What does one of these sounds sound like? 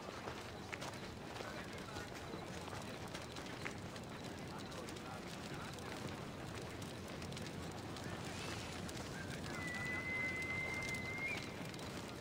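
A fire crackles and roars steadily in a brazier.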